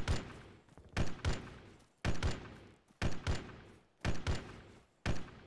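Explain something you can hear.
A gun fires in pairs of loud shots, about once a second, each echoing away.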